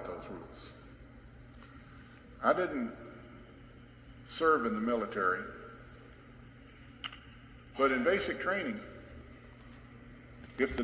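An elderly man speaks calmly into a microphone, heard through a loudspeaker in a large room.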